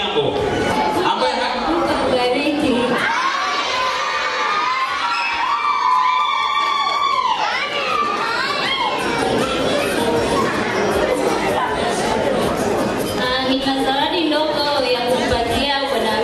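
A woman sings through a microphone and loudspeakers.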